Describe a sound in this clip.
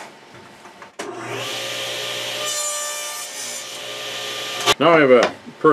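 A table saw's blade spins with a steady whine.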